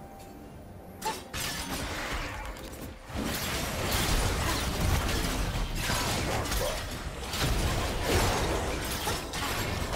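Game spells whoosh and crackle in a fight.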